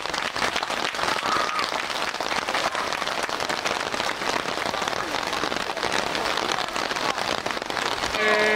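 Rain patters on umbrellas.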